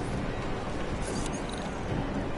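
An electronic keypad gives a short beep.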